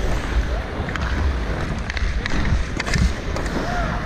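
A hockey stick taps a puck with sharp clacks.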